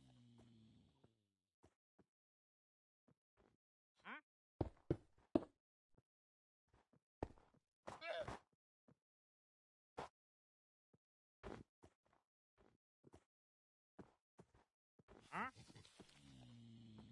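Stone blocks thud softly as they are placed one after another.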